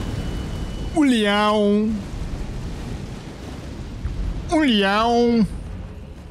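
A young man calls out in long, drawn-out tones close to a microphone.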